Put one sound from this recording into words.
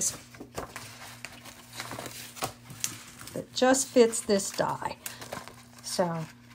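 Sheets of paper rustle and crinkle as they are handled.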